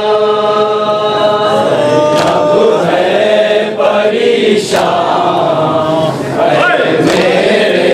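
A crowd of men chants loudly in unison.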